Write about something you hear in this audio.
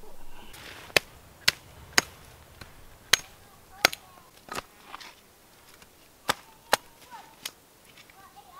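A blade chops sharply into branches.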